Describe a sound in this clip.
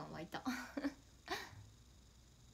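A young woman laughs and speaks brightly close to a microphone.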